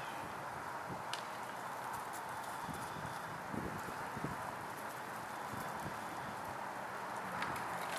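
An elk thrashes its antlers through a pile of dry brush, rustling and crackling it.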